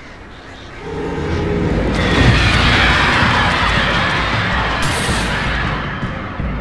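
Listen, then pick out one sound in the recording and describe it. A burning flare hisses and roars loudly.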